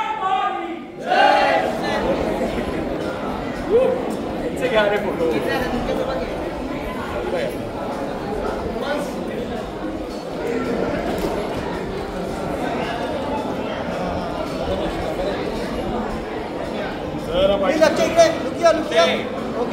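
A crowd of men and women chatters loudly in an echoing hall.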